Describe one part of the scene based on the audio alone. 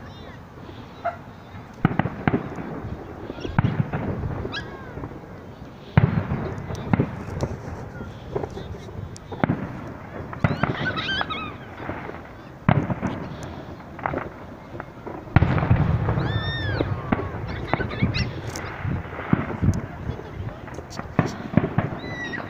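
Fireworks boom and crackle in the distance outdoors.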